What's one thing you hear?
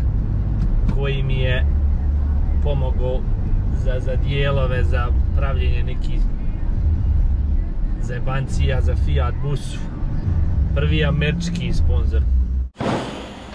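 A man talks casually inside a car, close by.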